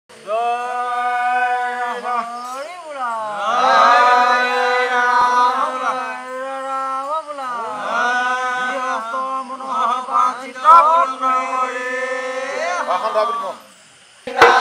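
A reed pipe plays a wavering melody over a steady drone, close by.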